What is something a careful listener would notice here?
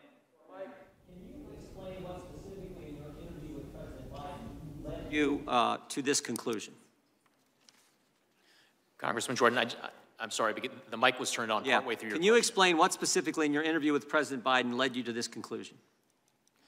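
A man speaks quickly into a microphone, heard through a loudspeaker in a large room.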